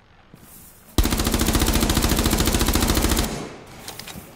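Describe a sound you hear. A rifle fires a long, rapid burst of shots.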